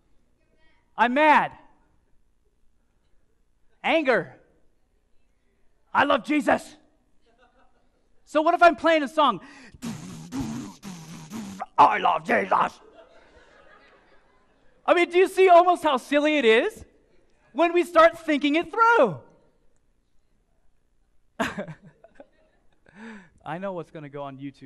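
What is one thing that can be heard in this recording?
A man speaks loudly and with animation to an audience.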